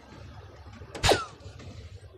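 A dart strikes an electronic dartboard with a sharp thud.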